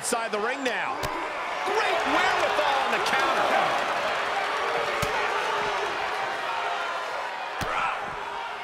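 Blows between wrestlers land with heavy thuds.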